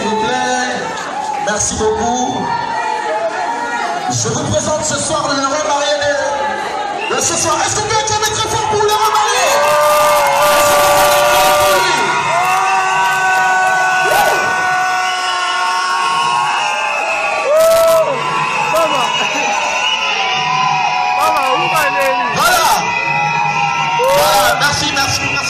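A crowd of women sings and ululates loudly.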